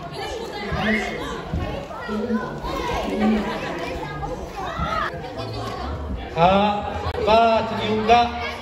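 A man speaks with animation into a microphone, amplified through loudspeakers in an echoing hall.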